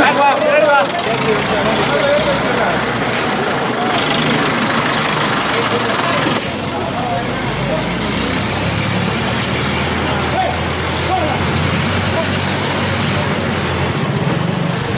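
A crane engine rumbles steadily.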